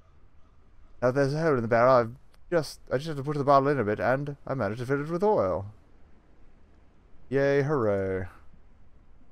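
A man talks with animation into a microphone, close up.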